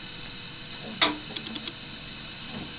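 A guitar bumps with a hollow knock.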